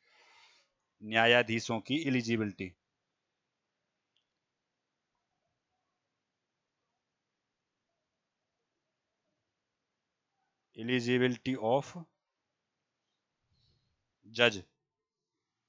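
A man speaks calmly through a headset microphone, in short bursts.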